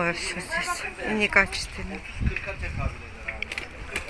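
Men and women chat at a distance outdoors.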